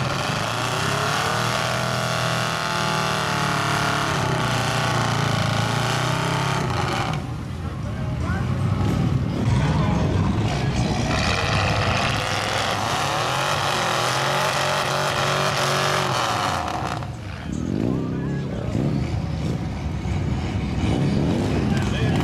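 Mud and water splash and churn under spinning tyres.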